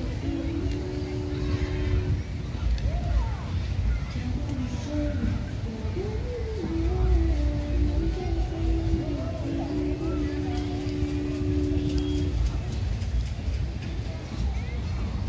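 Wind blows outdoors and rustles palm fronds.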